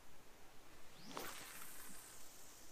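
A fishing rod swishes through the air in a cast.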